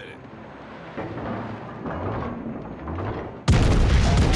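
Heavy naval guns boom in a series of blasts.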